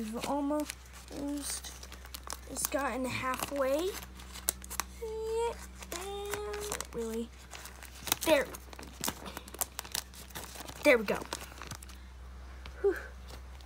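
Plastic binder pages rustle and crinkle as they are turned.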